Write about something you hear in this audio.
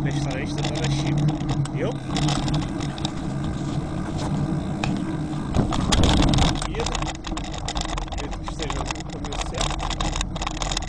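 A bicycle rattles over a rough road.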